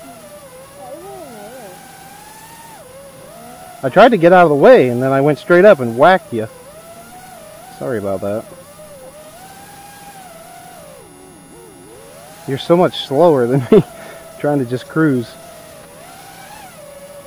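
A small model plane's engine buzzes overhead, rising and falling in pitch as it swoops past.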